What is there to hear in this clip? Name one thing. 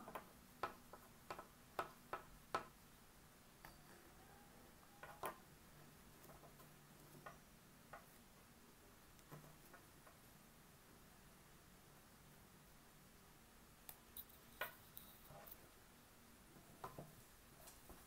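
Fingers tap and brush against taut fabric.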